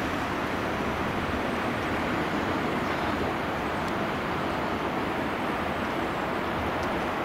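Water rushes and splashes steadily over a low weir.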